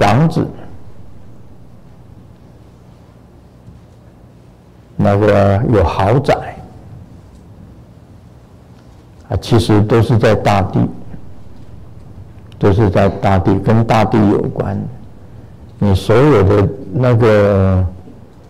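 An elderly man speaks calmly into a microphone, in short phrases with pauses, in a room with some echo.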